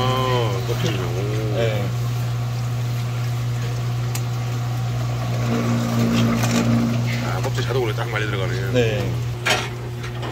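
Water runs from a tap and splashes.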